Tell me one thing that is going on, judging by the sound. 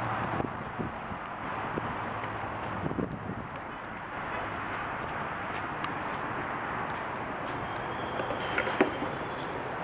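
Footsteps scuff on a brick pavement nearby.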